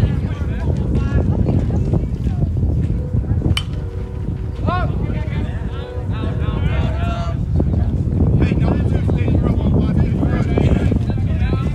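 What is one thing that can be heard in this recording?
Wind gusts loudly outdoors.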